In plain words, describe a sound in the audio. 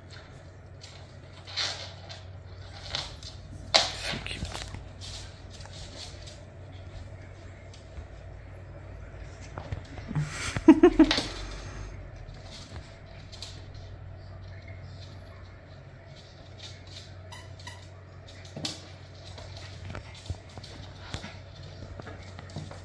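Two small dogs scuffle and play, their paws scratching and tapping on a wooden floor.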